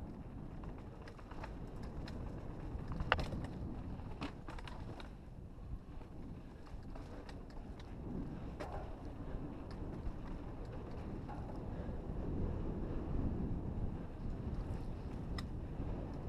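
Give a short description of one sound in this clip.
Small stones click and rattle against a bike.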